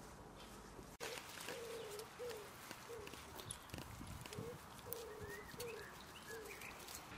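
A young goat's hooves tap and scrape on a man's shoulders.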